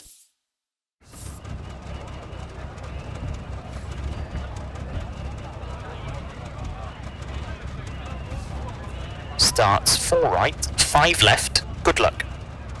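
A rally car engine idles with a low, steady rumble.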